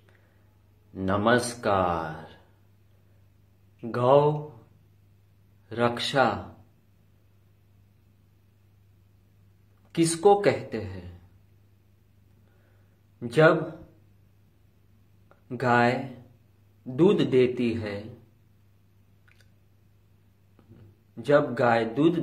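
A man speaks close to the microphone in short, slow phrases with pauses between them.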